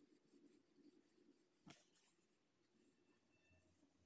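A paper page of a book is turned.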